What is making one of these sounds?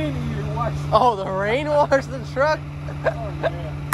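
A truck's hydraulic lifter whines and squeals.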